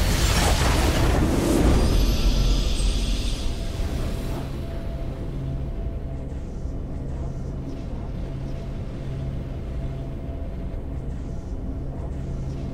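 A triumphant fanfare plays, then settles into a calm, steady tune.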